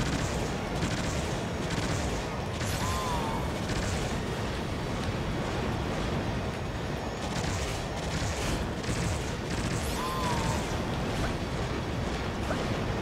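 A flying robot blasts shots rapidly.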